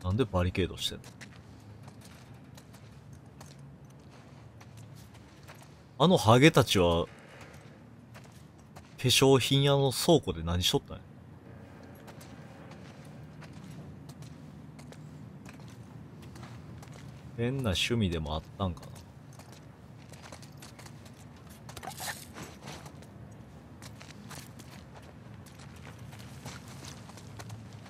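Footsteps crunch softly on gritty ground.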